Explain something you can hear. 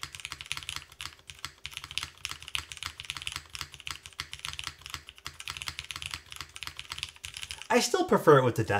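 Keys clack rapidly on a mechanical keyboard.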